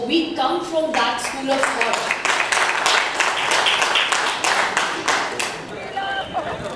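An audience claps.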